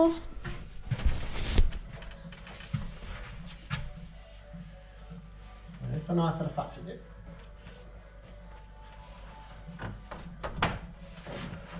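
A plastic roof panel rattles and clicks as a hand pushes it.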